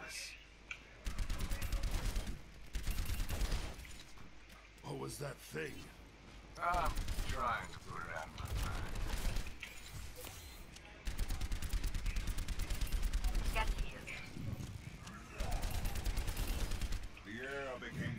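A rapid-fire gun shoots in fast bursts.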